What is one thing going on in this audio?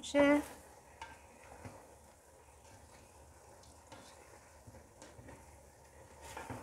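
A spoon scrapes and stirs rice in a metal pot.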